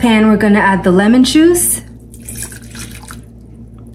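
Liquid pours into a metal pot.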